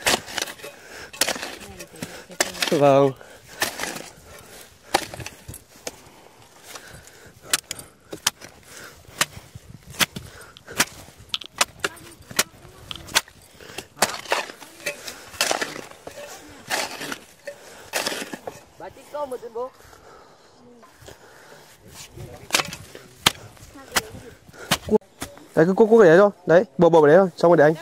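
A blade swishes and chops through grass in quick strokes.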